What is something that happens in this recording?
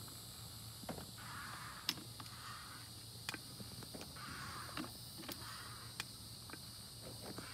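A hydraulic jack clicks and clanks rhythmically as its handle is pumped.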